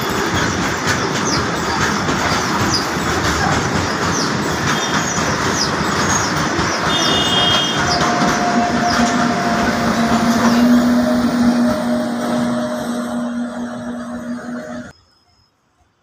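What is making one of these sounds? A freight train rumbles and clatters loudly past, close by.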